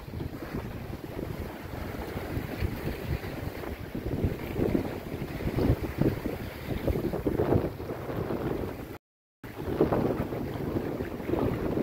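Wind gusts on open water.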